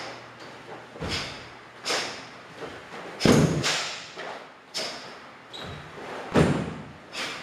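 Bare feet stamp and slide on a wooden floor.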